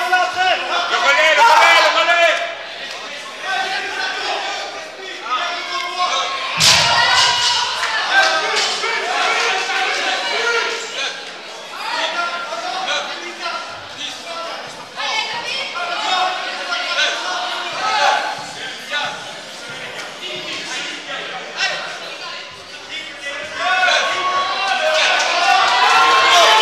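A crowd of men and women talk and shout encouragement nearby in an echoing hall.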